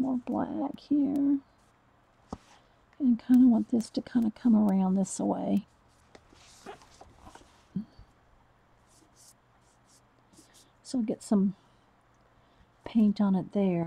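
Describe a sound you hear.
A paintbrush brushes softly against a hard, smooth surface.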